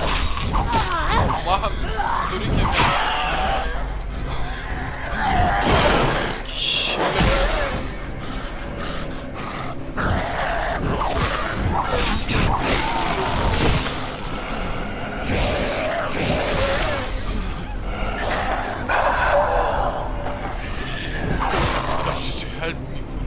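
A blade slashes and hacks into flesh with wet thuds.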